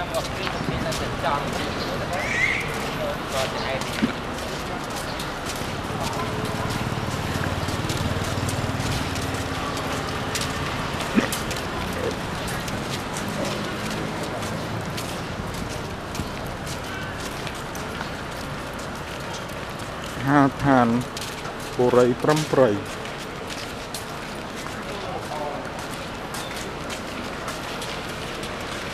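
Footsteps scuff on a paved street.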